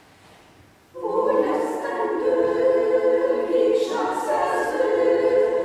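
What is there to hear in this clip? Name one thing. A mixed choir sings together, loud and full, in a large echoing hall.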